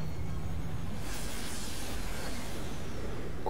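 A fiery beam roars upward.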